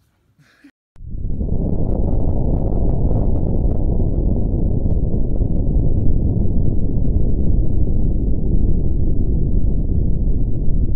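A deep explosion roars steadily.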